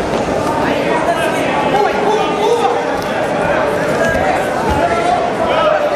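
Bodies thud onto a padded mat.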